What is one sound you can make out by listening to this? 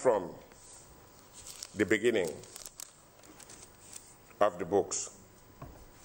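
Paper rustles as a page is turned.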